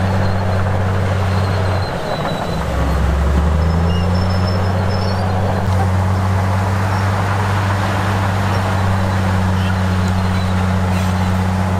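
A bulldozer engine rumbles steadily, its pitch shifting briefly as it works.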